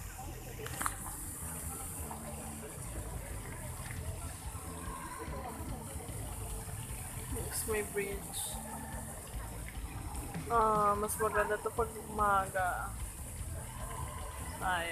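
A fountain splashes softly outdoors.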